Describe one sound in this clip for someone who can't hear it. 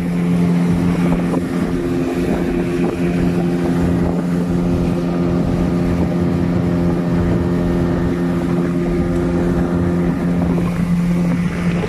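Water splashes and rushes against a boat's hull.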